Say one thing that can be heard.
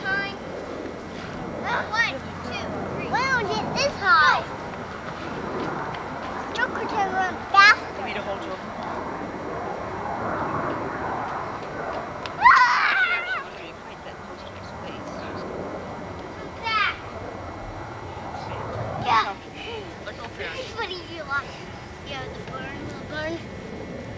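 A woman talks nearby in a cheerful voice.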